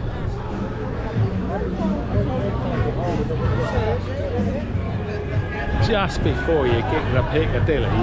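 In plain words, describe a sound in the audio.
A middle-aged man talks close to the microphone.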